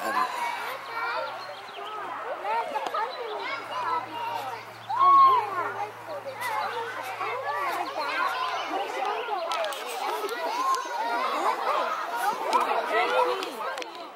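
Children chatter and call out excitedly outdoors.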